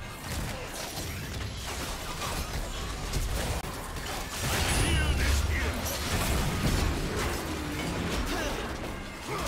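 Weapons clash and strike again and again.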